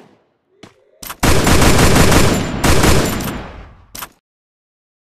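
A rifle fires in a loud burst of shots.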